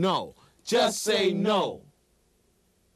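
Young men speak together with energy, close by.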